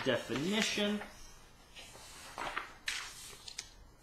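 A sheet of paper rustles as it is moved.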